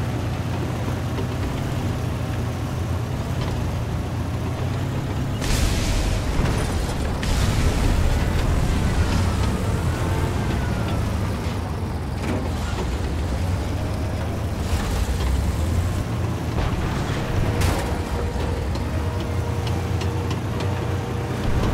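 Tank tracks clank and squeal as the tank drives.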